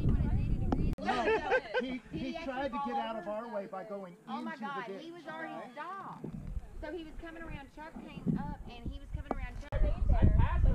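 A man talks calmly to a group outdoors.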